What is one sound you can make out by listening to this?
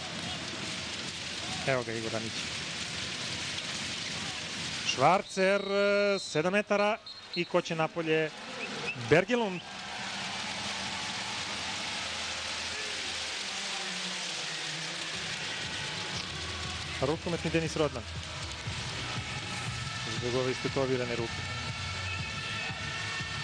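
A large crowd roars and cheers in a big echoing hall.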